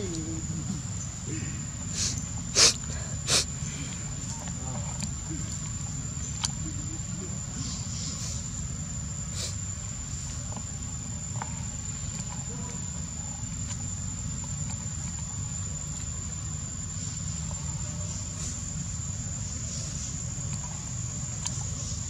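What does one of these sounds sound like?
A young monkey chews on a plastic straw.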